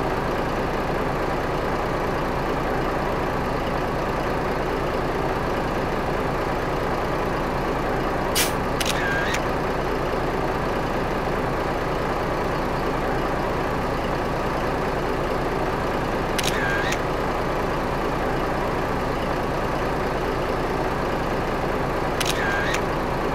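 A truck's diesel engine hums steadily as it drives along.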